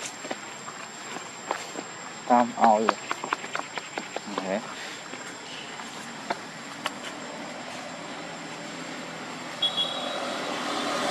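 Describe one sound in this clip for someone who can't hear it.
A monkey's feet patter and scuff on dry ground.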